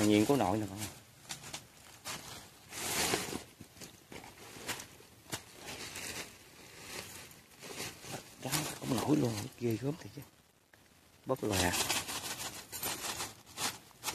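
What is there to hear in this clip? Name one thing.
Dry grass and leaves rustle and crackle as hands move through them.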